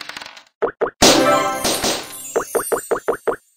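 A bright fanfare bursts out as a piece reaches home.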